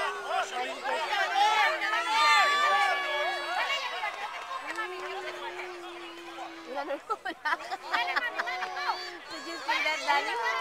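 Young girls shout and squeal excitedly outdoors.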